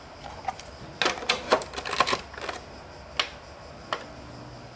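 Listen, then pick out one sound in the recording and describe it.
A plastic game cartridge clicks and knocks as it is pushed into a console slot.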